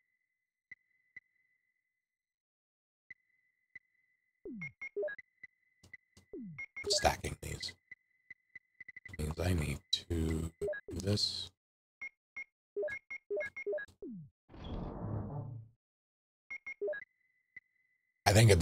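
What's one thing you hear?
Short electronic beeps tick one after another.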